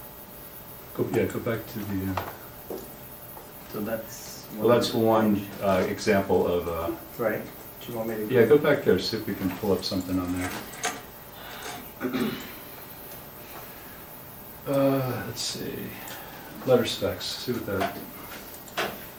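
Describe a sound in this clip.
A man speaks calmly in a room, heard from a short distance.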